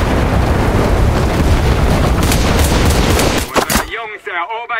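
Gunshots crack in quick bursts amid loud battle noise.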